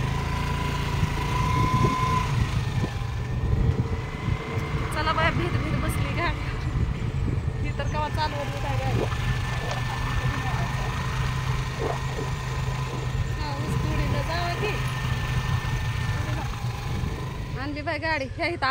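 A scooter motor hums steadily.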